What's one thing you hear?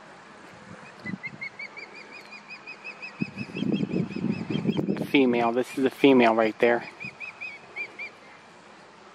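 A bird calls from high up with a long series of rapid, high chirps.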